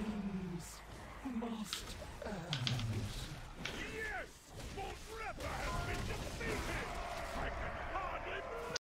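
Spells whoosh and crackle in a fast fight, with sharp hits landing.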